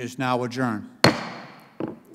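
A gavel strikes the desk once with a sharp knock.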